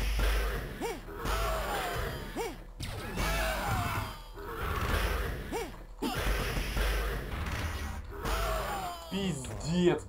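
Heavy blows land with loud thuds and crashes.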